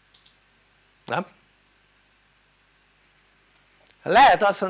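An elderly man speaks calmly and clearly into a microphone, with short pauses.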